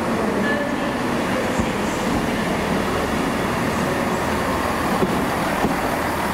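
A train's wheels rumble and clack over the rails as it rolls past close by.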